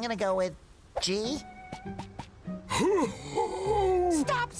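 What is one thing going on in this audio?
A cartoon character answers in a slow, dopey voice.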